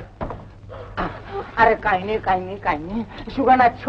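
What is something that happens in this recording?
A young woman speaks urgently, close by.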